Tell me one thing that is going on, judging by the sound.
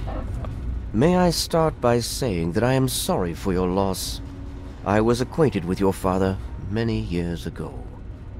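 A middle-aged man speaks calmly and gravely, close by.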